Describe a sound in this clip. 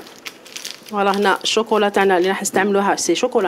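A woman speaks calmly into a clip-on microphone.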